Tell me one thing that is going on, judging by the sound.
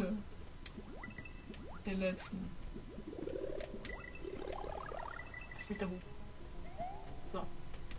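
Bright coin chimes ring out from a video game, one after another.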